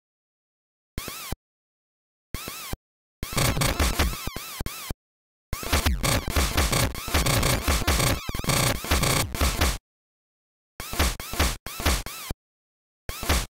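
Chiptune game sound effects beep and blast in short bursts.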